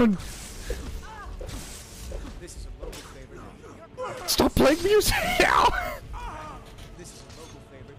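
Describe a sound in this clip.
Weapons clash and thud in a brawl.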